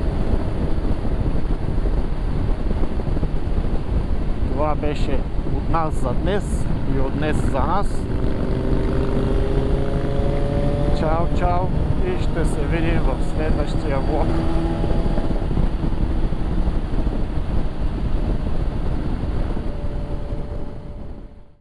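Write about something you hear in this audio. Wind rushes loudly past the rider.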